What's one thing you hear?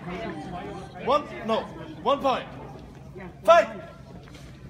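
A man shouts loudly in short bursts nearby.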